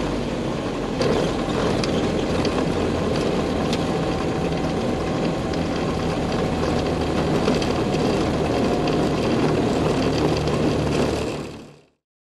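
Tyres touch down and rumble over a dirt strip.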